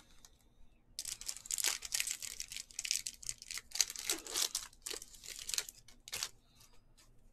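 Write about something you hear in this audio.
Foil wrapping crinkles and tears as a pack is torn open.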